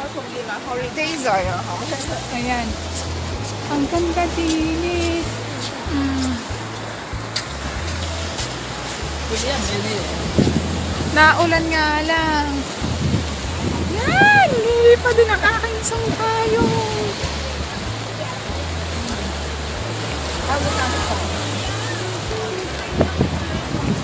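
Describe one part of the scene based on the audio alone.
A woman talks close to the microphone.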